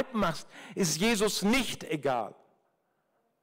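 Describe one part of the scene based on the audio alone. An older man speaks with animation into a microphone over loudspeakers.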